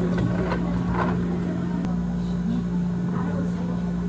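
Liquid pours into a glass.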